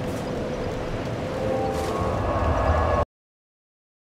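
A magical shimmer whooshes and chimes.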